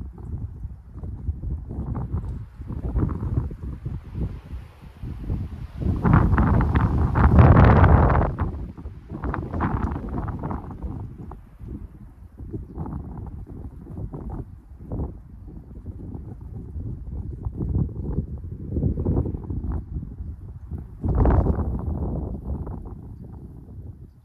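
Wind blows in gusts across open ground.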